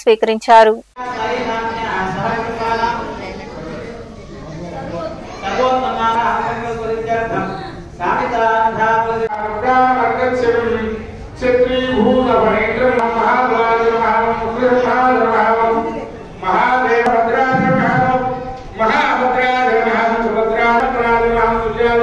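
A man chants a prayer through a microphone in a steady, singing voice.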